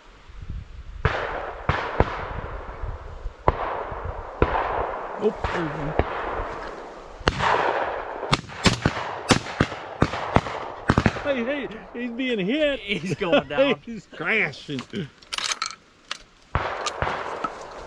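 Shotguns fire loud blasts, one after another, outdoors.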